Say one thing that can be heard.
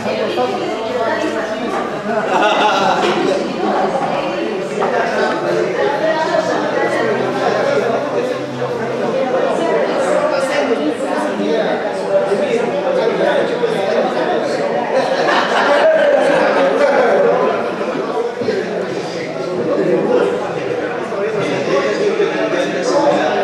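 Several adult men chat together at close range in a lively group conversation.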